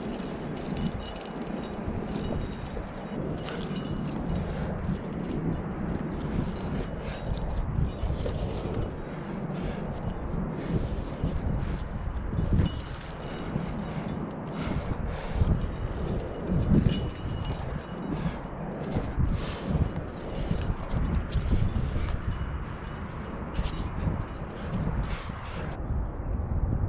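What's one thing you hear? Wind buffets outdoors with a low, steady rumble.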